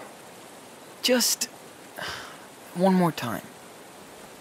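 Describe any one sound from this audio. A teenage boy speaks calmly and firmly.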